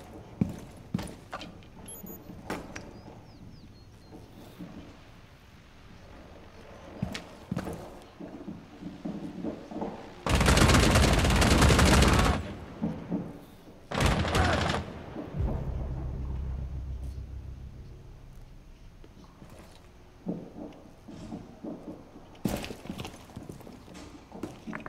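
Footsteps thud on wooden stairs and floor.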